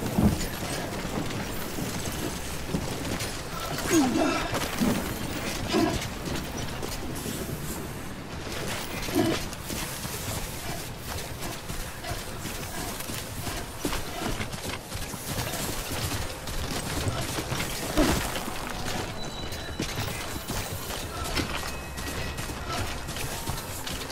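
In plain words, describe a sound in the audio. Heavy footsteps crunch on rocky ground.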